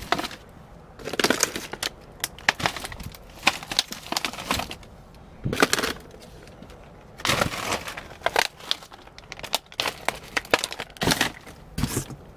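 Cardboard scrapes and thumps as a box is handled.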